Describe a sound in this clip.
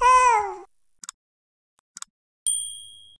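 A mouse button clicks twice.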